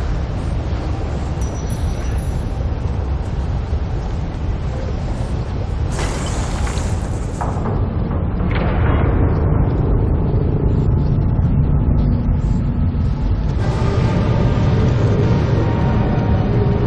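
Waterfalls roar steadily.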